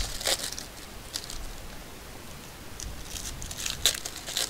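A foil card pack crinkles in a hand.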